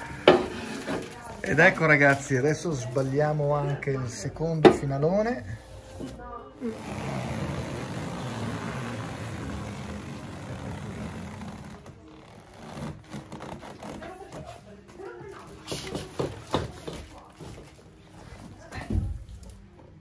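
Cardboard boxes scrape and thump as they are handled.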